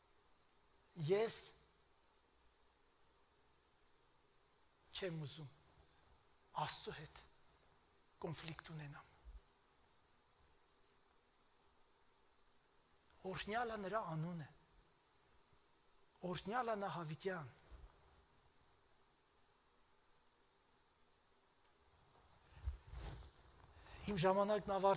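A middle-aged man speaks with animation into a microphone in short bursts, with pauses between.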